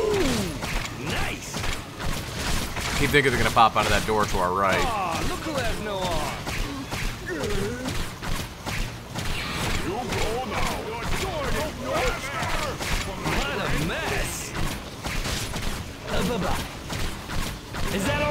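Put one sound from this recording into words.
Blades slash and strike repeatedly in a fight.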